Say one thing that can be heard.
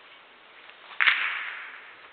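A cue strikes a snooker ball with a crisp knock.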